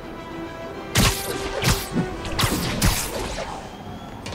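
Webs shoot out with sharp, quick thwips.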